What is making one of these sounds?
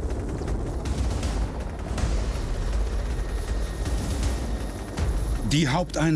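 A helicopter's rotor thuds nearby.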